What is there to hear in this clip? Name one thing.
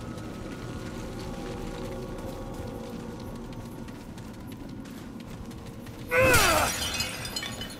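Armoured footsteps thud on stone.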